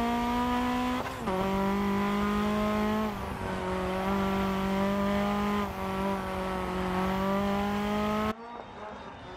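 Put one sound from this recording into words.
A rally car engine roars loudly and shifts gears at high revs.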